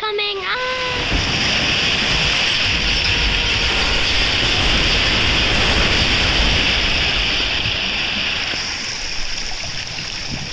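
A huge wave of water rushes and roars over rubble.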